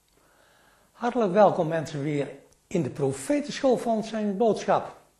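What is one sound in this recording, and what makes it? An elderly man speaks calmly and clearly, as if to an audience.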